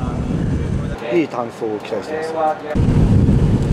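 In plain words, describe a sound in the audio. A middle-aged man speaks calmly into a headset microphone.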